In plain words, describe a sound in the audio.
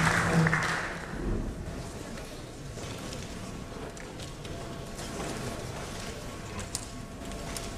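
Two men murmur quietly to each other.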